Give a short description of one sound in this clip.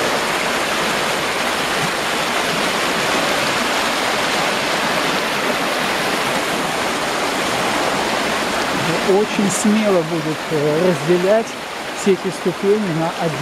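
A fast river rushes and splashes over rocks nearby.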